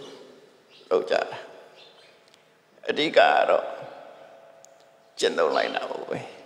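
An elderly man speaks calmly into a microphone in short phrases, with a reverberant echo.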